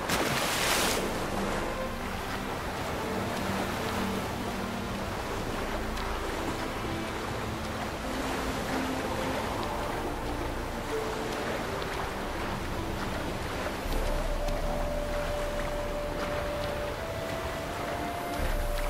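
Water sloshes and splashes with steady swimming strokes.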